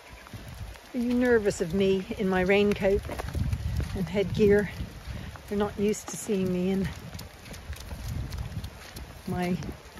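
Sheep bleat loudly nearby.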